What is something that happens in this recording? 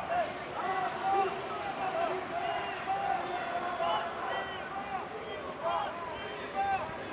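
A crowd of marchers chants and shouts in the street far below.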